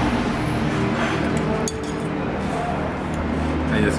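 A fork scrapes and clinks against a plate as pasta is served.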